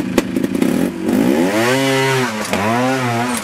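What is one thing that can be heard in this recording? A motorcycle engine revs up and down loudly.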